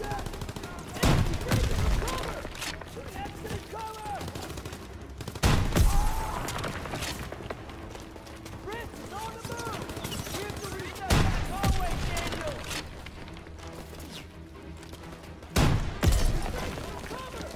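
Loud explosions boom, one after another, several seconds apart.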